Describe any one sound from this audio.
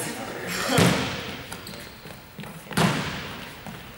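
A ball thuds as it is kicked, echoing in a large hall.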